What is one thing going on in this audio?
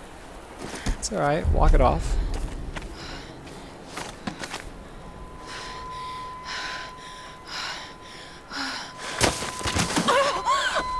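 A young woman breathes hard and whimpers in distress.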